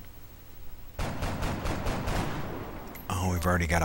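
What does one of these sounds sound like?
Rapid gunfire rattles in a loud burst.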